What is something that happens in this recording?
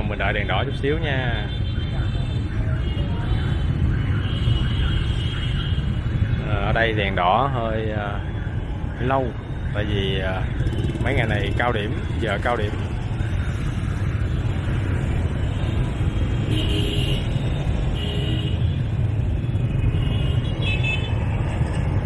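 Many motorbike engines idle and rumble close by in busy traffic.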